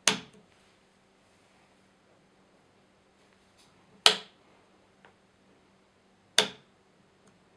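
A switch clicks sharply.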